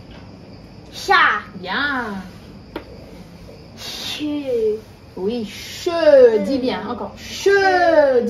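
A woman speaks clearly and slowly, sounding out syllables nearby.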